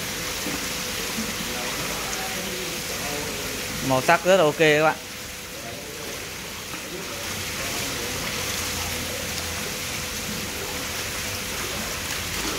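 Water pours from a plastic bucket into a basin of water.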